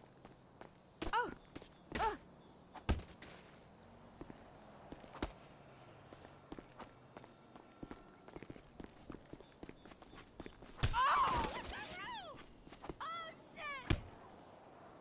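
A woman cries out in pain.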